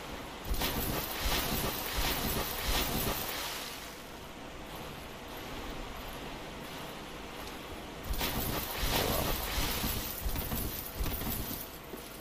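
Footsteps splash heavily through water.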